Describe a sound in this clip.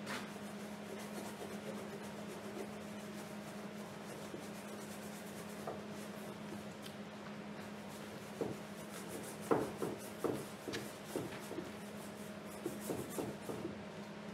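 A paintbrush brushes and scrapes across a canvas.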